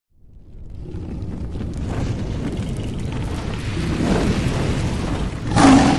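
Flames roar and whoosh, swelling louder.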